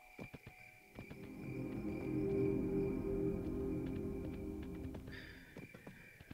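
A low magical hum drones steadily, then fades.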